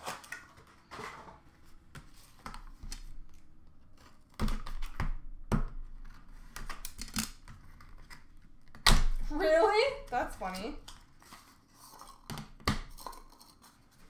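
Hands rustle and crinkle foil card packs.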